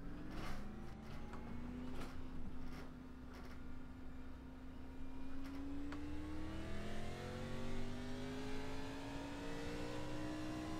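A race car engine hums steadily and slowly rises in pitch as it speeds up.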